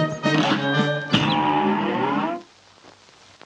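Lively brassy music plays loudly and then stops abruptly.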